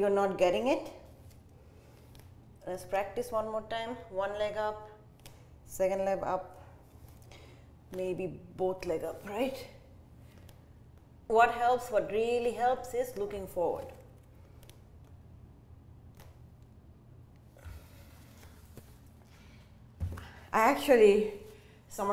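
A young woman speaks calmly and close by, giving instructions.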